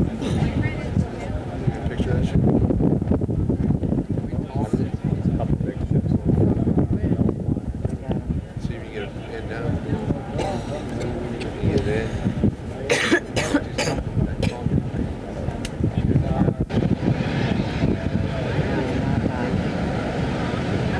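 Wind buffets the microphone outdoors in a strong, gusty rumble.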